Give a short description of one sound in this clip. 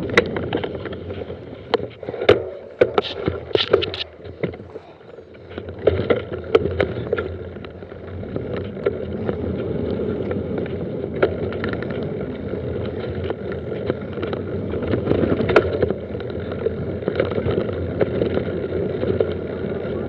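Mountain bike tyres roll and crunch over dry leaves and dirt.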